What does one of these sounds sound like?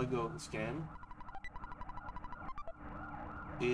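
Quick text beeps chirp in a rapid run.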